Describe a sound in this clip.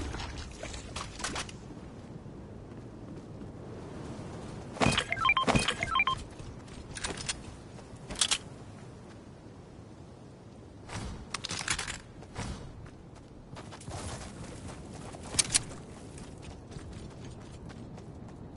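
Quick footsteps patter along as a character runs.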